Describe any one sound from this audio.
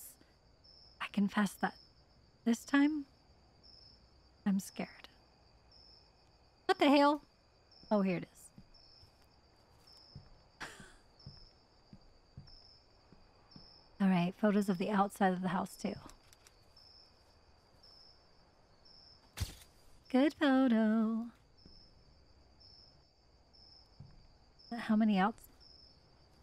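A young woman talks with animation into a microphone, close up.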